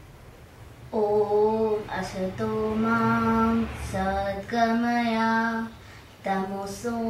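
A young girl chants a verse in a steady, sing-song voice close by.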